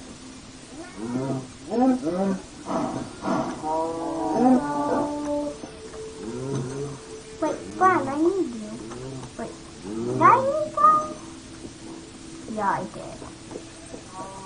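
A young boy talks with animation close to a microphone.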